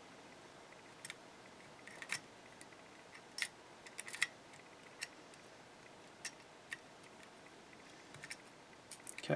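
A key clicks and scrapes inside a small metal padlock.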